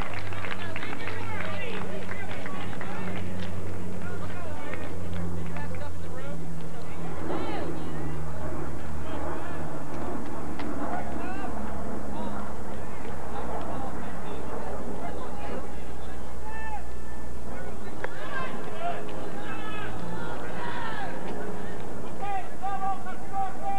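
Young players shout and call out to each other across an open field outdoors.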